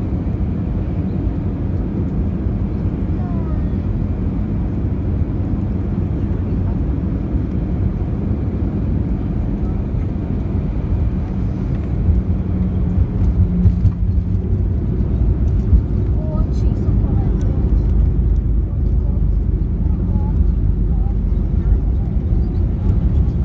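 Jet engines roar steadily from inside a plane cabin.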